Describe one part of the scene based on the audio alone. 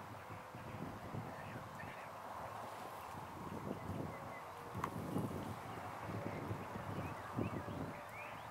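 Wind gusts outdoors and rustles through grass and leaves.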